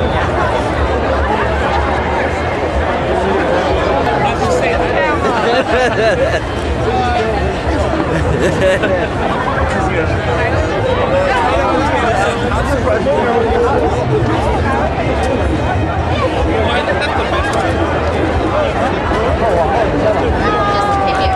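A large crowd of men and women chatters and shouts loudly outdoors.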